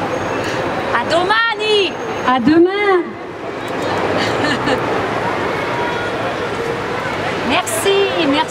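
A woman sings into a microphone over a loudspeaker outdoors.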